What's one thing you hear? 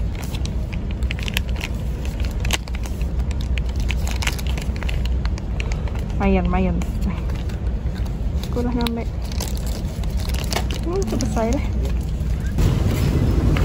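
Plastic packets rustle and crinkle as they are handled.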